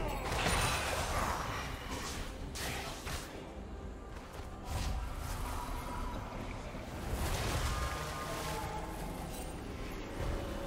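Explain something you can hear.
Fantasy combat sound effects whoosh and clash.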